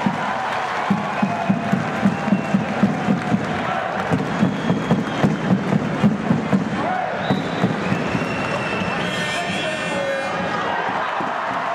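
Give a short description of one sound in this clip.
A large crowd cheers and chatters in an echoing hall.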